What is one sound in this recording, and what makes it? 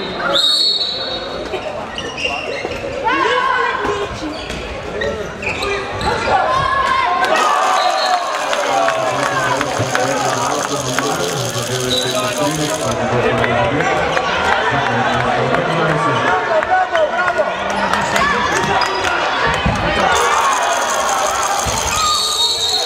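A handball bounces on a hard floor.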